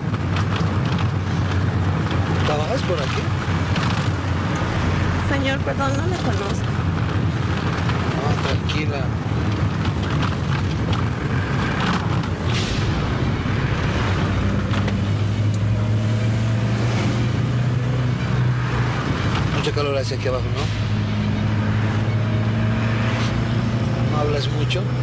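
A van engine rumbles steadily.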